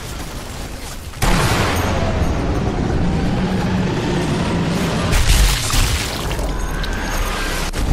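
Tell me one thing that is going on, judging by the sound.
A rifle shot cracks sharply.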